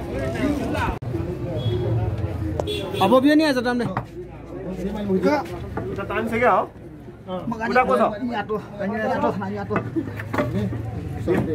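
Men talk close by.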